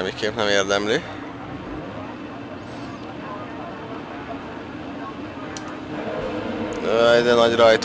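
Several motorbike engines idle with a low steady drone.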